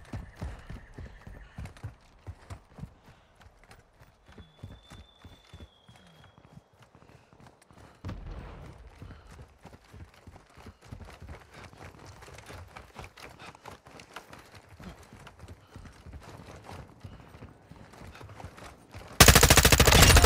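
Footsteps run quickly over the ground.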